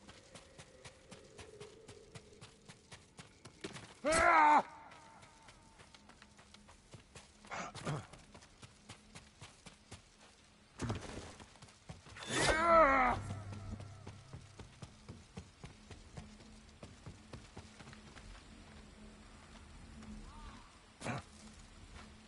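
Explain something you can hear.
Footsteps patter quickly and steadily.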